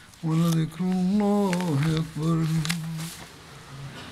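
An elderly man chants in a long, drawn-out voice through a microphone, echoing in a large hall.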